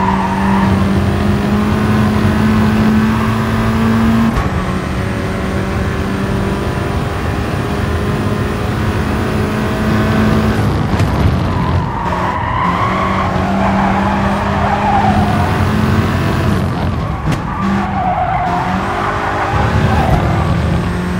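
A racing car engine roars at high revs, rising and dropping as the gears shift.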